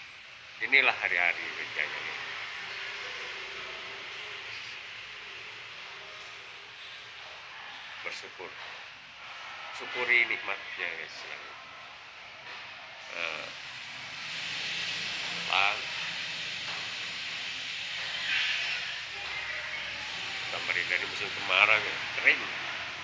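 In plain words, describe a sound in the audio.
A man speaks close by in short bursts, slightly muffled.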